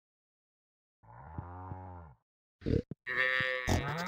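A cow moos.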